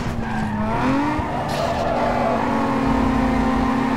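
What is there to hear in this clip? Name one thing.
Tyres screech as a car drifts through a bend.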